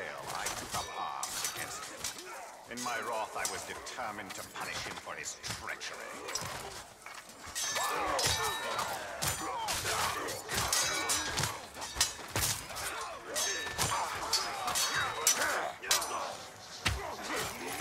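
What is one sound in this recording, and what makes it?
Creatures grunt and snarl in battle.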